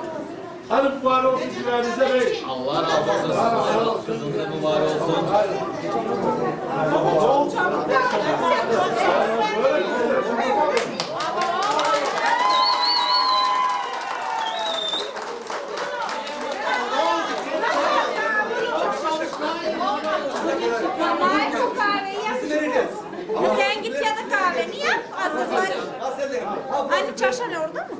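Several men talk loudly and with animation.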